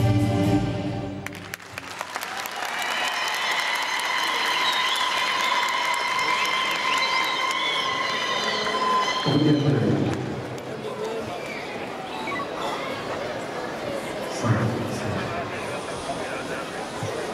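A large audience murmurs and chatters in an echoing hall.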